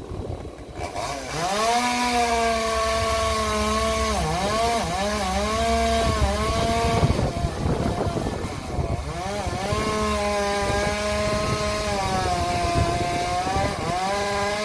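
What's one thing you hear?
A chainsaw engine revs up and down.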